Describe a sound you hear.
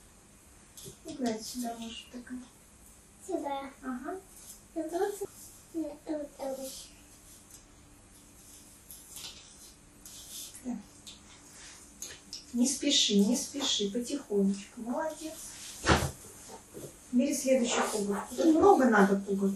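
A woman speaks calmly and warmly, close by.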